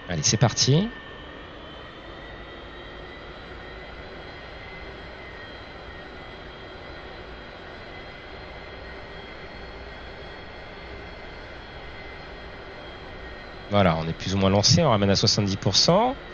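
A jet engine whines steadily.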